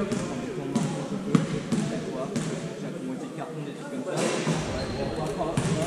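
Young people talk nearby in a large echoing hall.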